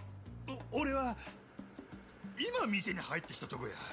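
A man answers hesitantly.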